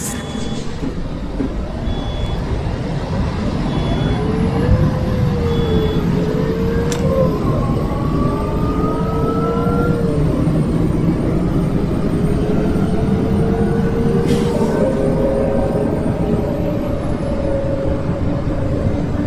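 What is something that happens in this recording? A bus engine hums and whines steadily while driving.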